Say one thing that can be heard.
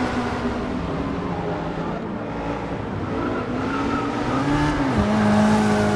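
Several racing car engines drone together.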